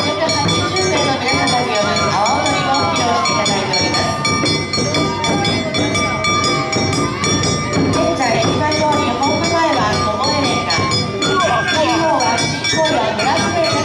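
A crowd of women chant and sing loudly.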